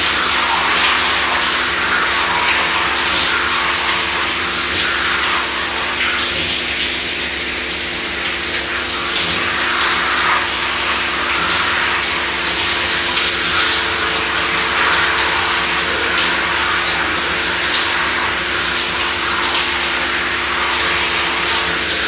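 Wet hair squelches as hands rub it.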